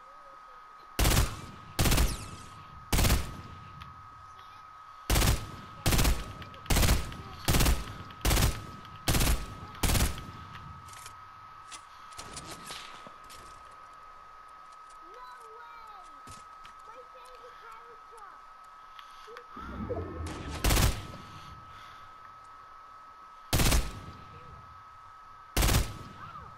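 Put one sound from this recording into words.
A rifle fires single loud shots, one after another.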